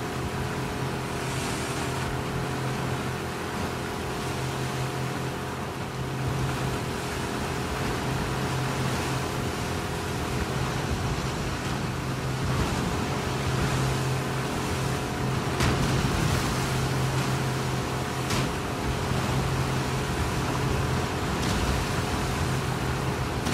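A wooden rowboat splashes through choppy waves.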